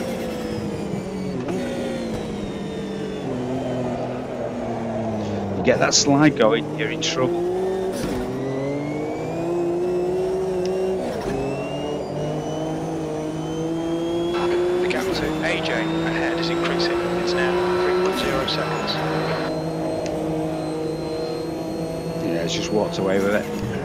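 A racing car engine roars loudly, rising in pitch as it accelerates and dropping with each gear change.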